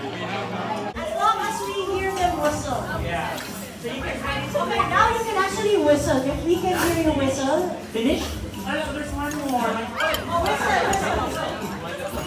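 A woman talks into a microphone over loudspeakers in a large room.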